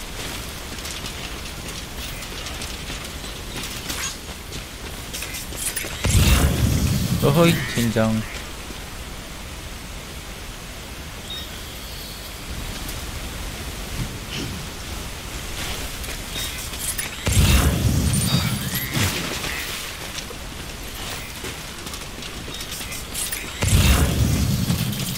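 Water splashes steadily underfoot.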